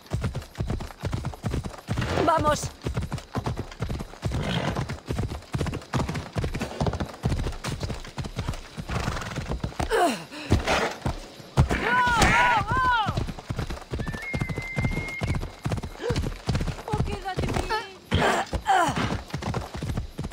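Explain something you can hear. Horse hooves thud in a quick, steady gallop on dirt.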